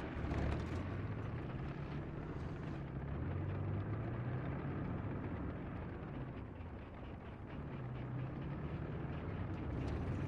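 A tank engine idles with a low, steady rumble.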